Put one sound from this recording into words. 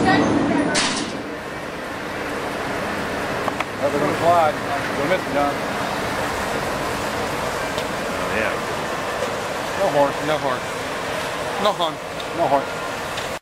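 A monorail train glides by overhead outdoors with a soft whir.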